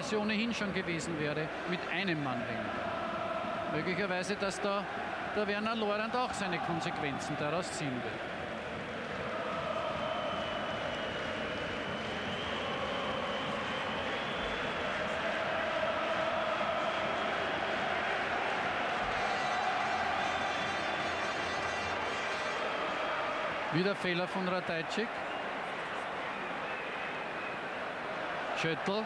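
A large stadium crowd chants and roars steadily in the open air.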